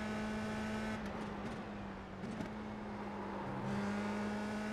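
A racing car engine drops in pitch as the car brakes into a corner.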